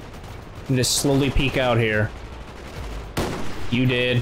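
A rifle shot cracks.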